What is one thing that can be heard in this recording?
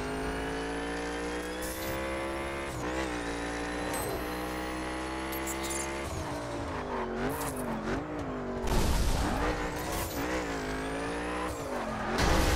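A race car engine roars at high speed, its pitch dropping and rising as it shifts gears.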